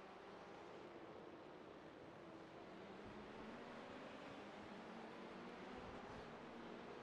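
A racing car engine drones at high revs.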